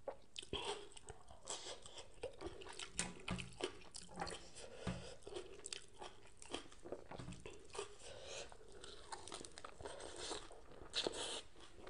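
A woman chews and slurps food loudly, close to a microphone.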